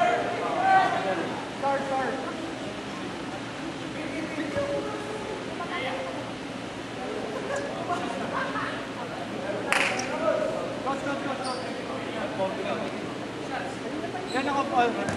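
Young men call out to each other across a large echoing gym.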